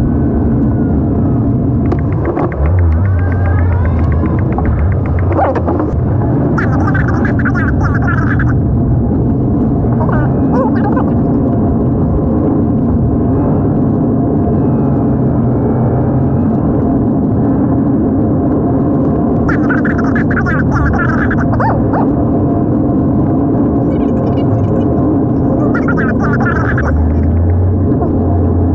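Tyres roll and crunch over a gravel road.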